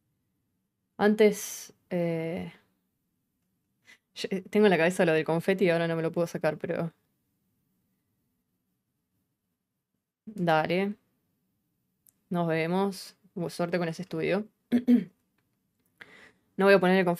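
A young woman speaks calmly and closely into a microphone, in bursts with pauses.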